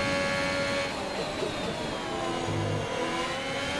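A racing car engine drops in pitch as the car brakes for a corner.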